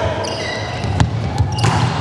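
A volleyball is spiked with a sharp smack.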